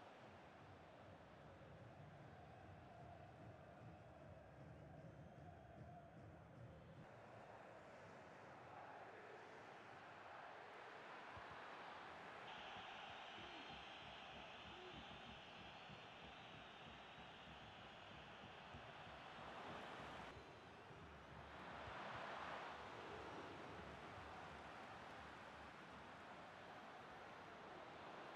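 A stadium crowd roars steadily, rising to louder cheers.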